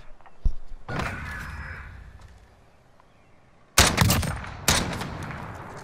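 Rifle shots bang loudly and echo off into the distance.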